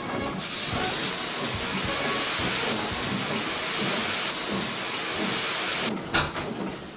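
Compressed air hisses from an air hose.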